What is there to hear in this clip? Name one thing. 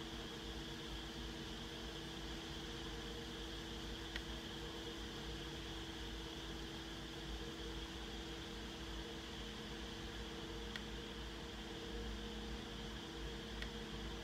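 An electric fan hums and whirs steadily nearby.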